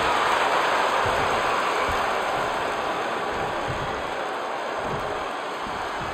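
A large crowd cheers and roars loudly, slowly easing off.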